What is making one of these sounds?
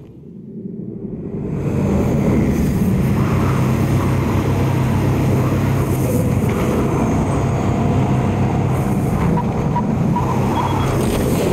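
A jet aircraft's engines roar steadily.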